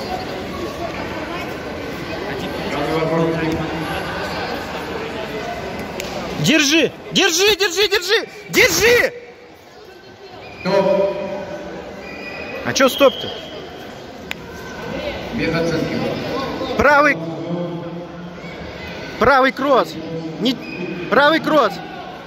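Several people talk in a large echoing hall.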